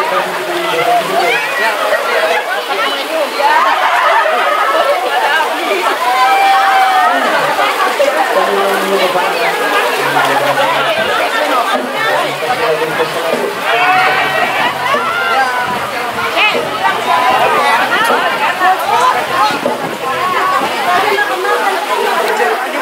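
A crowd of men and women chatters and laughs nearby.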